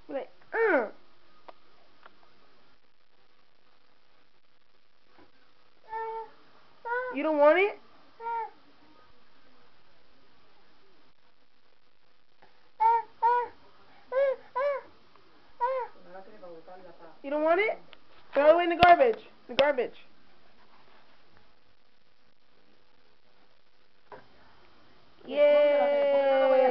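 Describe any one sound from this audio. A toddler babbles and squeals in short bursts close by.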